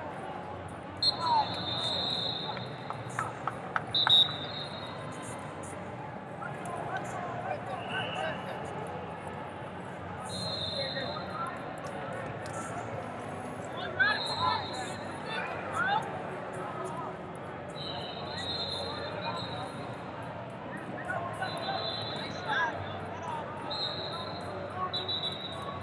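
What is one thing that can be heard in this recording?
Wrestling shoes squeak sharply on a mat.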